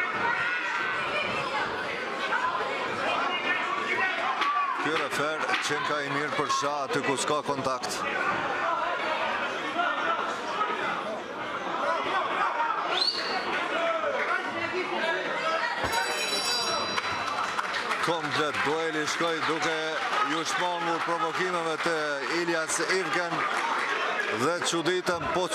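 A crowd chatters and calls out in a large echoing hall.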